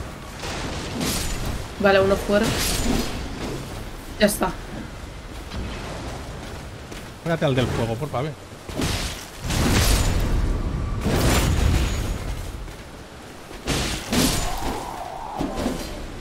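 Swords clash and strike.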